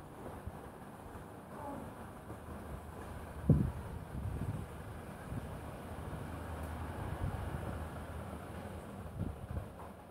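Wind gusts outdoors and rustles the leaves of the trees.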